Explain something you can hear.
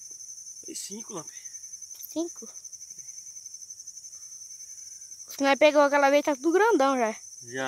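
A young child talks close by in a high, drawn-out voice.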